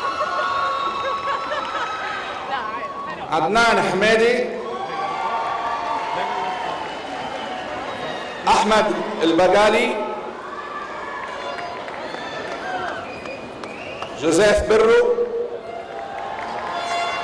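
A man reads out names over a loudspeaker in a large echoing hall.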